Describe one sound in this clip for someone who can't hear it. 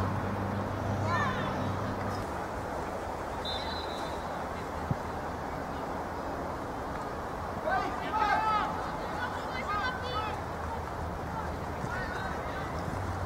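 Young men shout to each other across an open field, some way off.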